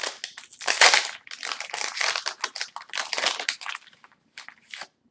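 A foil wrapper crinkles and tears close by.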